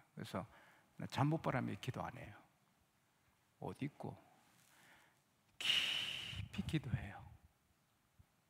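A middle-aged man speaks calmly and earnestly into a microphone, in short phrases with pauses.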